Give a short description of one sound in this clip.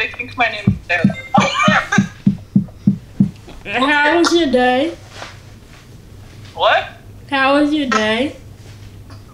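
A young woman talks and laughs over an online call.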